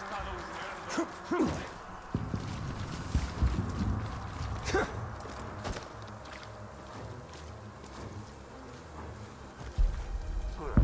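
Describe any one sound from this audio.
Footsteps thud and scrape across a tiled roof.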